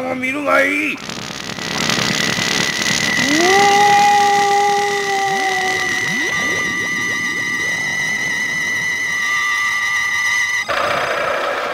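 An energy beam hums steadily.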